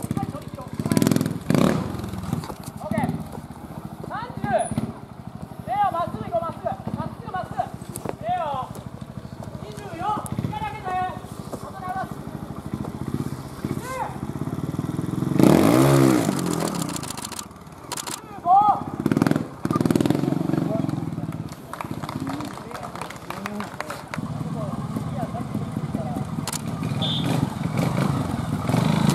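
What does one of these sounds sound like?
A motorcycle engine revs in loud bursts and idles between them.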